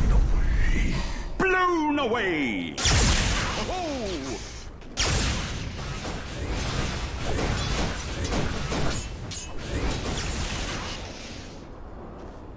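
Game weapons clash and magic blasts crackle in a fast fight.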